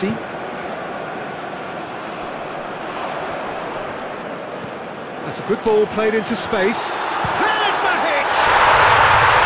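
A stadium crowd murmurs steadily.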